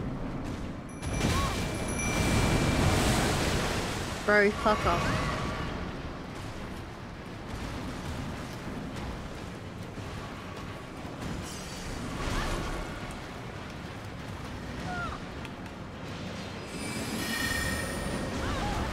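Magic blasts whoosh and burst with a roar.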